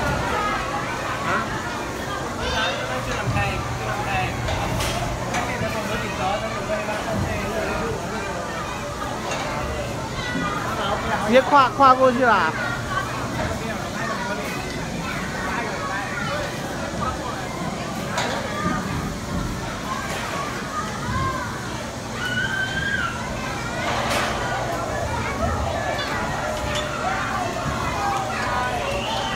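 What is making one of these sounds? Children's voices chatter and call out in a busy, echoing indoor hall.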